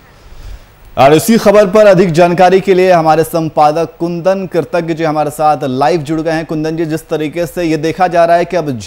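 A man speaks steadily and clearly into a microphone.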